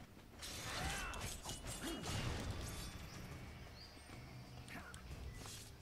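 Video game combat sounds whoosh and clash.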